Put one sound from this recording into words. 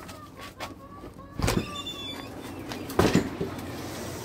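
A door latch clicks and a door swings open.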